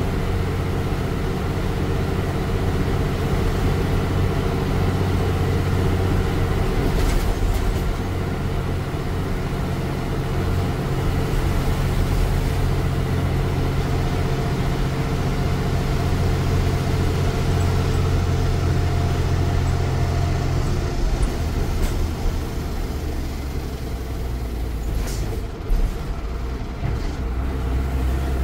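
A bus engine drones and rumbles steadily from close by.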